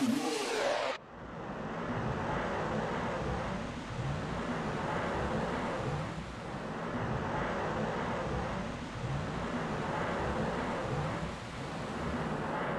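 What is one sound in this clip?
A ghostly spirit whooshes and swirls steadily.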